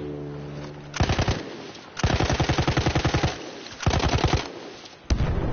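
A machine gun fires rapid, loud bursts.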